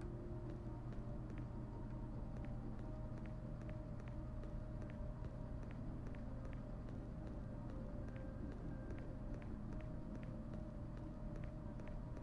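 Footsteps climb stone stairs at a steady pace.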